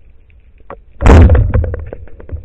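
A speargun fires underwater with a sharp, loud snap.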